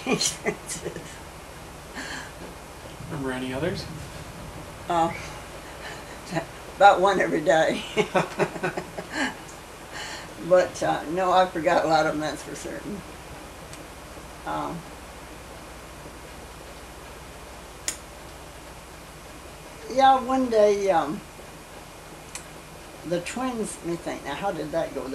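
An elderly woman talks and laughs warmly, close by.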